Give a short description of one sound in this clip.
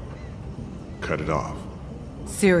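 A man speaks in a strained, urgent voice.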